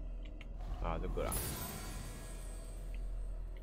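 A game menu gives a bright, sparkling burst of sound.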